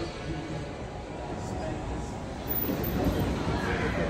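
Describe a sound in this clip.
A train's doors slide open.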